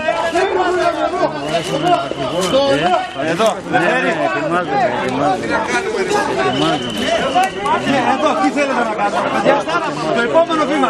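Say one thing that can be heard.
A crowd of men talk and shout over each other outdoors.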